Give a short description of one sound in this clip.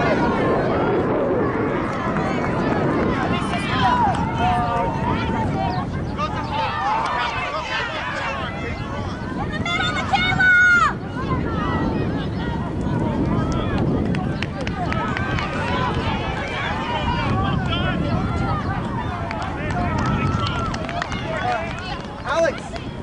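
A crowd of spectators chatters and calls out in the distance.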